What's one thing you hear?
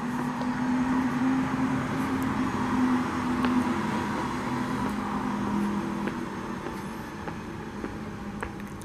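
City traffic rumbles steadily in the distance outdoors.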